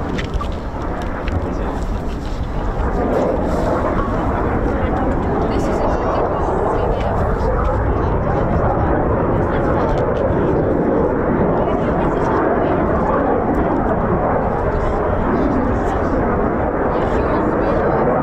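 A jet engine roars steadily overhead, growing louder.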